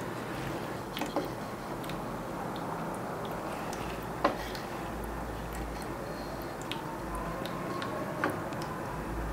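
Wooden blocks knock softly as they are set down on a shelf.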